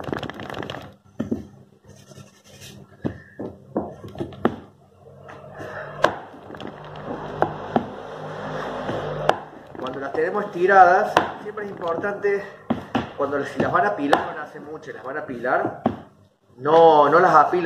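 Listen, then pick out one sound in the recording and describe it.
Hands slap and pat dough on a table.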